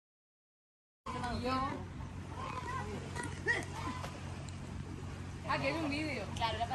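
Young women chat nearby outdoors.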